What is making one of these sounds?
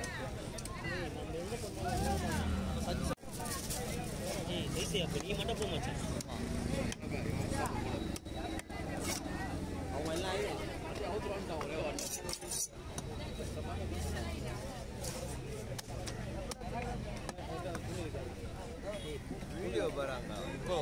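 A knife chops on a wooden block.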